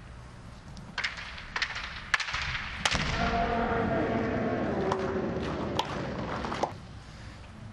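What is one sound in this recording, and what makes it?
Bamboo swords clack sharply together.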